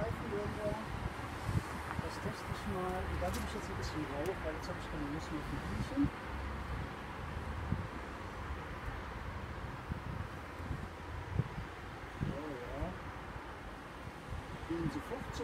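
Bees buzz steadily around an open hive.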